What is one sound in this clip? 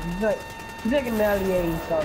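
A blast booms from a game explosion.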